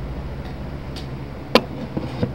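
A glass bottle knocks sharply against a hard surface.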